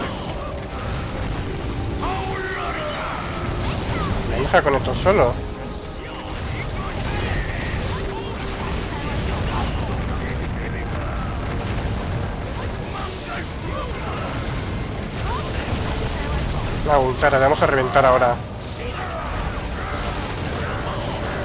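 Spell blasts and weapon strikes crash during a battle.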